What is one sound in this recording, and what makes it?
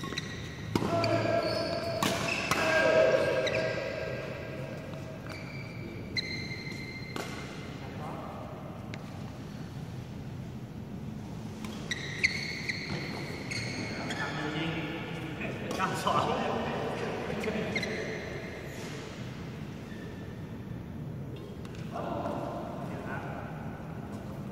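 Young men call out and talk during play, in a large echoing hall.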